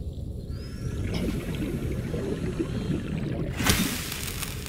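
Bubbles gurgle and fizz.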